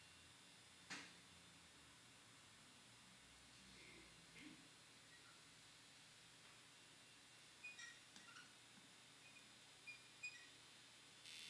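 A microphone gives faint clicks and rustles as it is handled.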